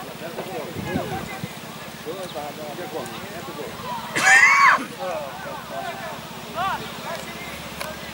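Young players shout and call out to each other in the distance outdoors.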